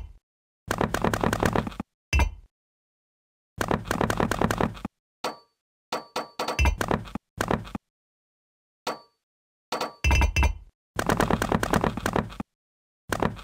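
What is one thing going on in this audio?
Game blocks click softly as they are placed.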